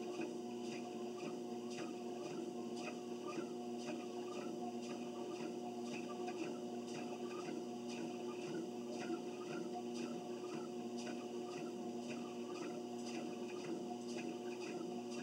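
Footsteps thud in a steady rhythm on a treadmill belt.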